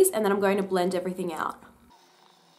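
A young woman speaks clearly and close to a microphone.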